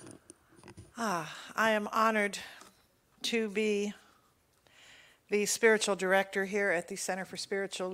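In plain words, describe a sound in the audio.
An elderly woman speaks calmly through a microphone in a large room.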